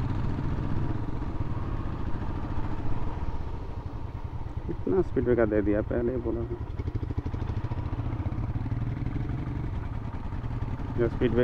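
A motorcycle engine rumbles steadily at low speed.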